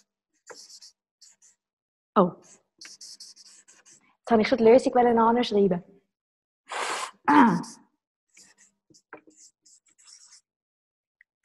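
A marker squeaks faintly on paper.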